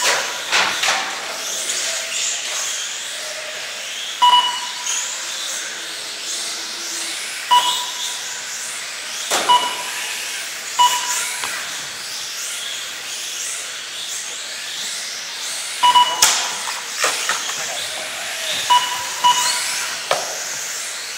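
Small racing cars knock against plastic track barriers.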